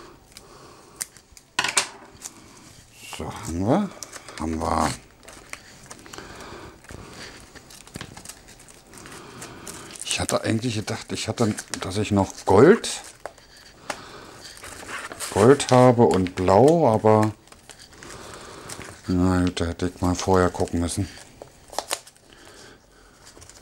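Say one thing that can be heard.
Gift wrap and ribbon rustle softly.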